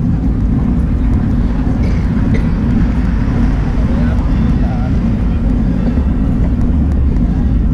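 Wind rumbles loudly across a moving microphone outdoors.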